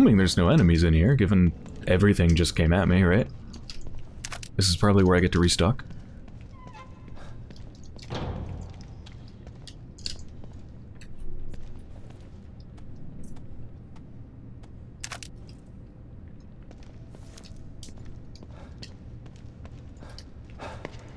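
Footsteps tread slowly on a hard floor.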